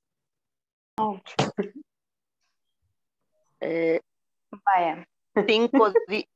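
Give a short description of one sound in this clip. Women talk over an online call.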